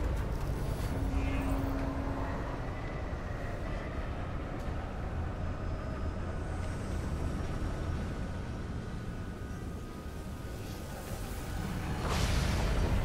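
A spaceship's engines hum low and steady.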